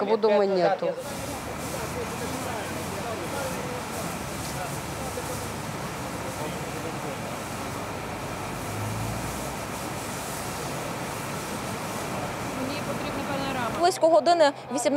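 Water sprays from a fire hose with a steady hiss.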